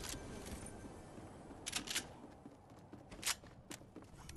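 Video game rifle shots crack.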